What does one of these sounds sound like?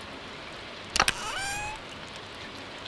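A wooden chest opens with a quick rising chime.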